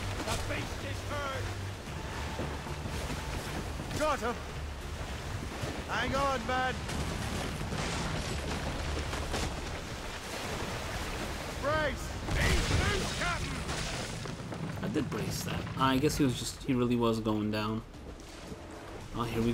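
Ocean waves roll and wash steadily around a small boat.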